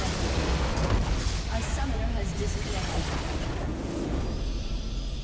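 Loud game explosions and magic blasts boom and crackle.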